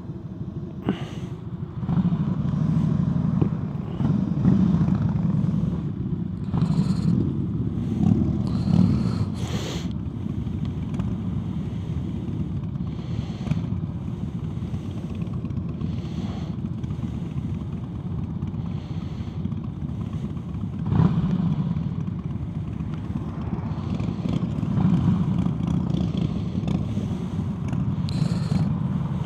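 A motorcycle engine idles with a deep, throbbing rumble close by.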